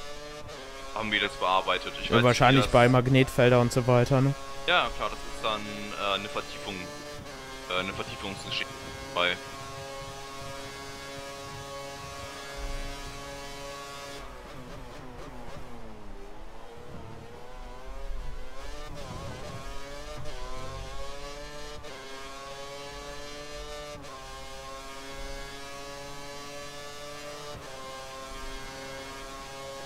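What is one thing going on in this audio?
A racing car engine screams at high revs, dropping in pitch as it slows for corners and climbing again as it speeds up.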